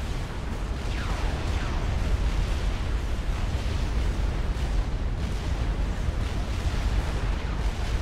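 Laser weapons zap and fire repeatedly.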